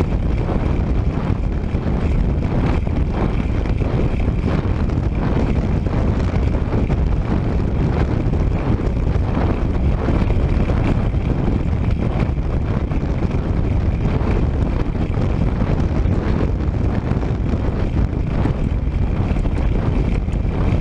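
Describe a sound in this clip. Strong wind roars and buffets loudly outdoors.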